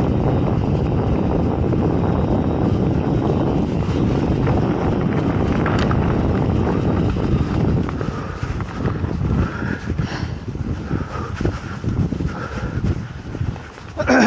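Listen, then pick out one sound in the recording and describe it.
Wind rushes past the microphone.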